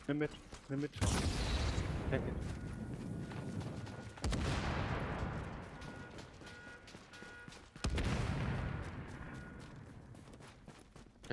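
Explosions boom loudly and rumble away.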